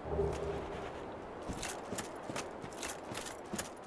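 Armoured footsteps clink and crunch on the ground.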